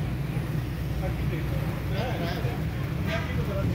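Food sizzles on a griddle.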